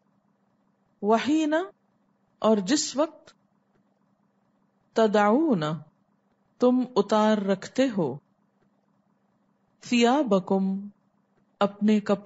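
A woman speaks calmly into a close microphone, in short phrases with pauses.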